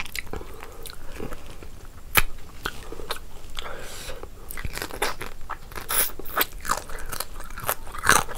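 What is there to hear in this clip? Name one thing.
A young woman chews and smacks her lips loudly, close to a microphone.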